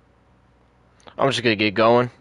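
A truck door clicks open.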